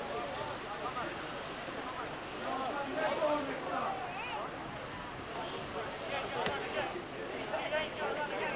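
Several men talk and call out nearby, outdoors.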